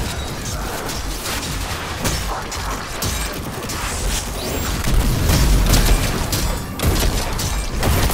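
Guns fire rapidly in bursts.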